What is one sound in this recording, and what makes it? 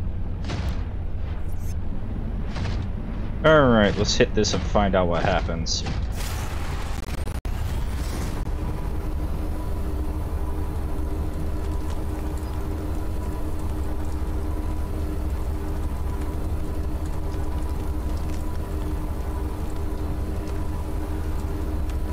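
A low electronic drone hums steadily.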